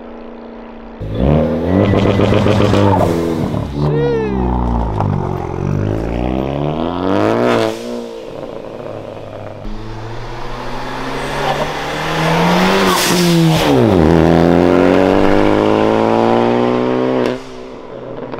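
A car engine revs loudly and rises and falls in pitch.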